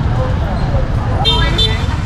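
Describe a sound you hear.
A motorbike engine rumbles as it passes nearby.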